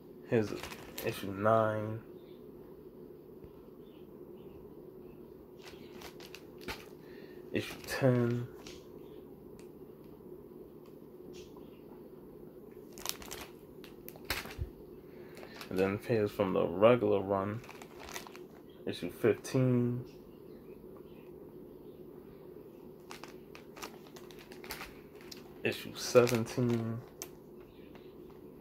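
A comic book in a plastic sleeve rustles and taps as it is handled.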